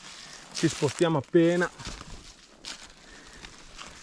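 Dry leaves rustle and crunch underfoot.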